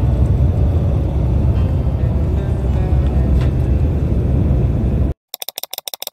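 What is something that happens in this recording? A bus engine rumbles steadily on a highway.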